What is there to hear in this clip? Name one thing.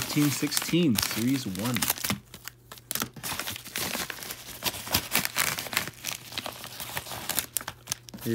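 A padded paper envelope crinkles as it is handled.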